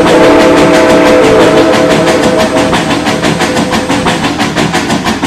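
A steam locomotive chuffs as it pulls away.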